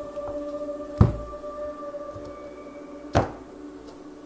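Cards tap down on a table.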